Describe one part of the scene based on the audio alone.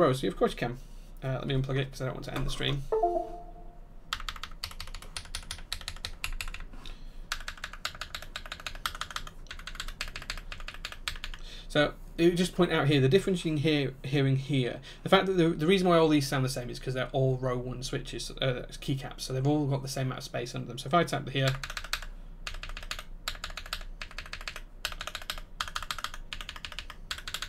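Keyboard keys clack rapidly under typing fingers.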